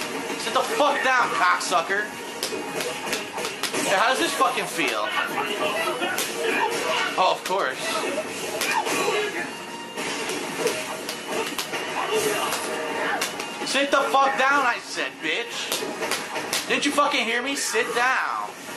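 Punches and kicks land with sharp thuds and smacks, over and over.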